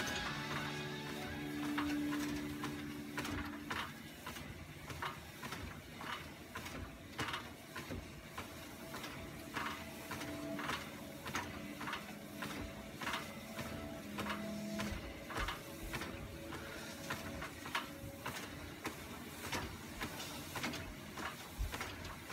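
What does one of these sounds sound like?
Feet thump steadily on a treadmill belt.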